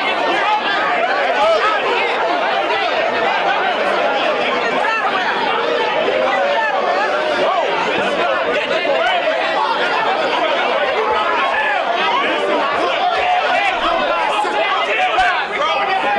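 A crowd of young people chatter and cheer loudly in a noisy room.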